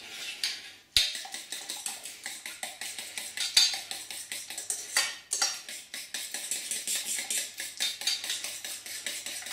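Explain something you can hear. A fork whisks rapidly against a metal bowl.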